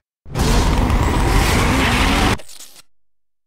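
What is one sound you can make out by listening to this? Racing car engines roar at high speed.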